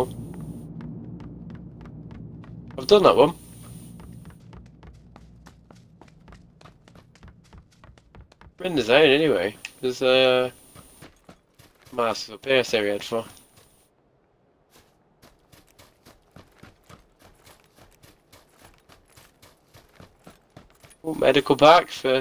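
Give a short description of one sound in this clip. Footsteps run quickly and steadily.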